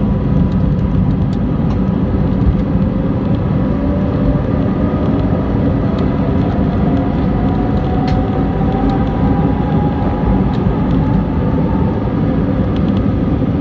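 The airliner's wheels rumble and thump over the runway.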